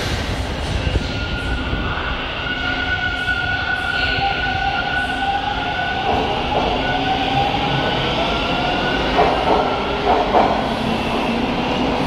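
A subway train's electric motors whine as it pulls away.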